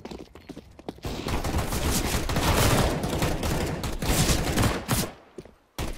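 Rifles fire rapid bursts of gunshots.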